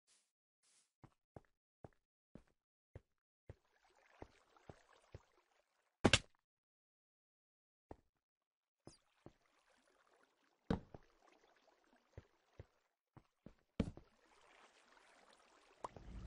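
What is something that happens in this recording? Footsteps knock on stone.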